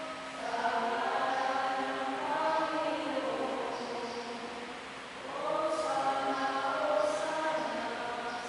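A man chants slowly through a loudspeaker, echoing in a large hall.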